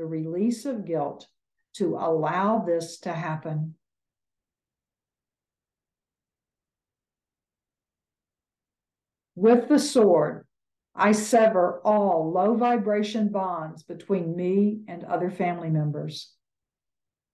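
An elderly woman speaks calmly over an online call, pausing between phrases.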